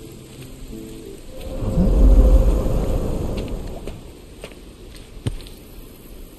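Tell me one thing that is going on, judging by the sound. Footsteps crunch on a stone path.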